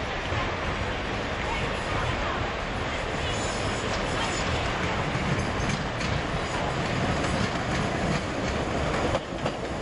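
A train approaches along the tracks with a low, rumbling roar that grows louder.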